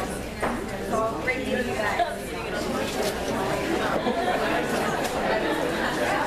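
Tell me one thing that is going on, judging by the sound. Men and women in an audience chatter and murmur in a room.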